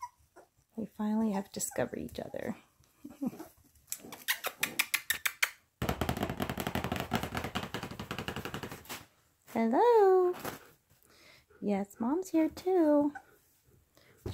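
Young puppies whine and yelp.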